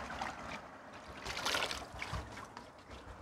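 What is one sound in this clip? Water pours into a plastic bucket.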